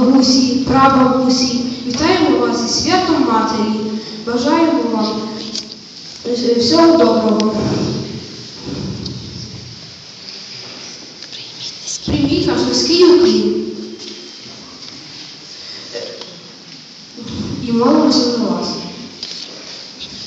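A teenage boy speaks into a microphone, reciting clearly in an echoing hall.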